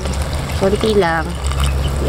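Water pours into a pot of food.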